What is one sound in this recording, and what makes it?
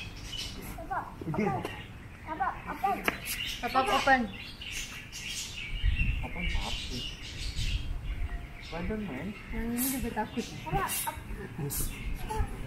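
A small child babbles excitedly nearby.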